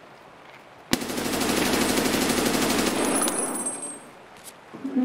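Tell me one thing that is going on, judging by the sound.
A rifle fires a long, loud burst.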